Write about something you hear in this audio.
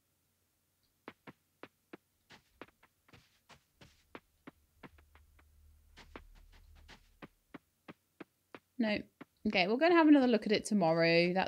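Quick footsteps patter along a dirt path.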